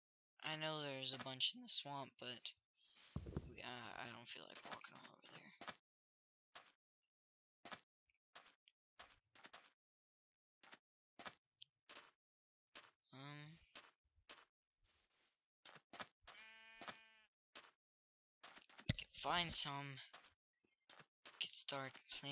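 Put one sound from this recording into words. Footsteps crunch on sand in a steady walking rhythm.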